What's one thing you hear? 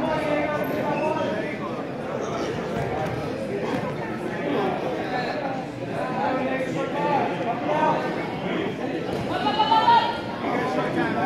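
Wrestlers thud and scuffle on a mat.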